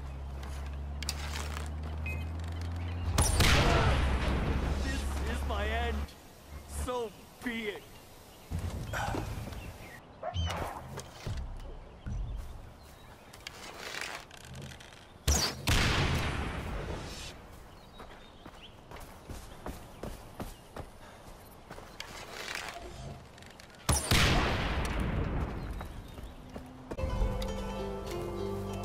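A bowstring twangs as an arrow is shot.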